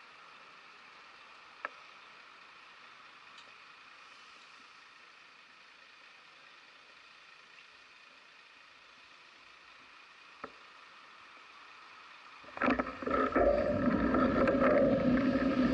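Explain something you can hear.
City traffic hums steadily in the distance outdoors.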